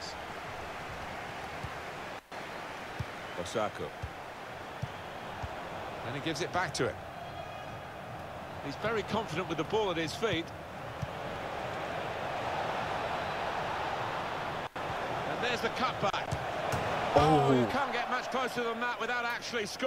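A stadium crowd roars and murmurs.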